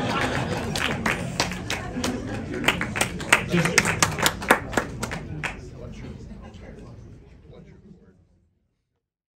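An audience claps and cheers in a large hall, then the sound fades out.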